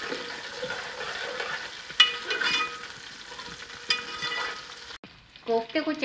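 Food sizzles softly in a hot pot.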